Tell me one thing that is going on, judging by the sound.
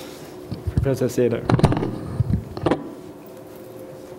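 Papers rustle.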